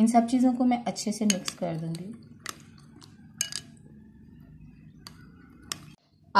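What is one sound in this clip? A spoon scrapes and clinks against a metal bowl while stirring.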